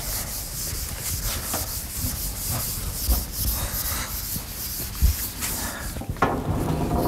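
A felt eraser rubs and swishes across a chalkboard.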